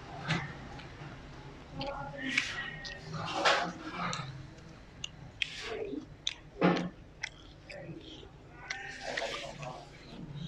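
Fingers squish and rustle through food on a leaf.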